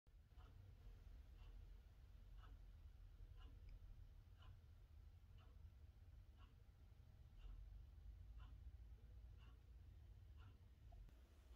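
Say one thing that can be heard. A needle ticks softly once per turn of a spinning record.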